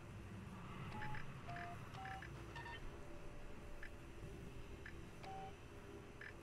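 Keypad buttons beep as they are pressed.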